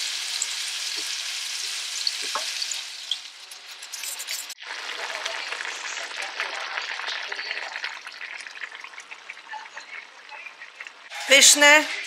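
Sauce sizzles and bubbles in a hot pan.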